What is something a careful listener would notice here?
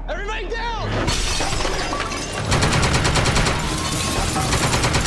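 An explosion roars and blasts through the room.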